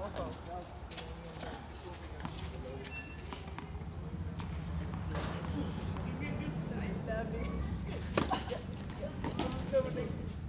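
Tennis rackets hit a ball back and forth outdoors.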